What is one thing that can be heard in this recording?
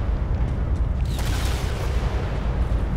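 A heavy gun fires in bursts.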